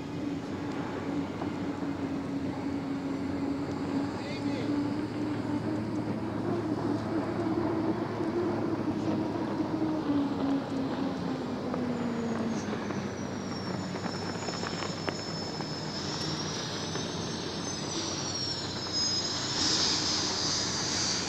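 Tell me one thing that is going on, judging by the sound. A racing boat's engine roars steadily as the boat speeds across the water.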